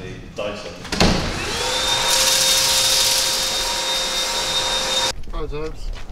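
A cordless vacuum cleaner whirs loudly with a steady high whine.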